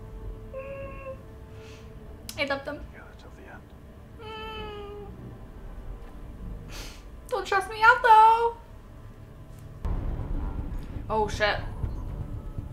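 A young woman squeals and talks excitedly close to a microphone.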